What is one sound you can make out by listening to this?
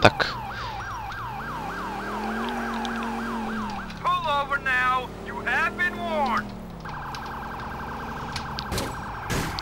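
A police siren wails and yelps.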